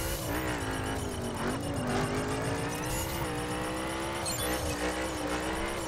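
A racing car engine roars steadily at high revs.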